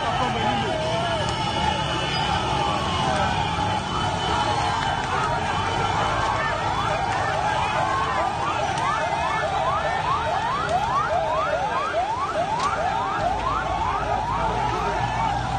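A crowd shouts outdoors.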